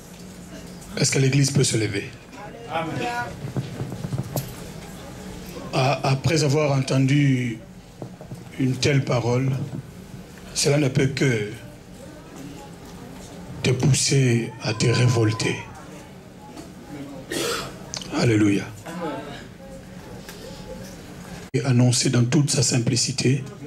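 A man speaks with animation into a microphone over loudspeakers, in bursts, in an echoing hall.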